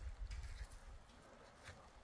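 Footsteps tread softly on wet grass.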